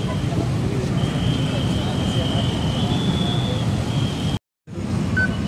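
Motorbikes and cars drive past with a steady engine rumble.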